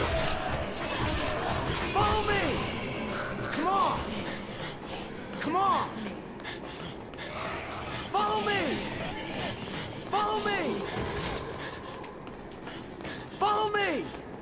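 Footsteps run quickly across a hard floor.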